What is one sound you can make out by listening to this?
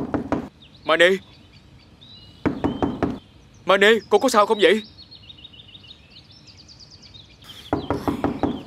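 A man knocks on a wooden door.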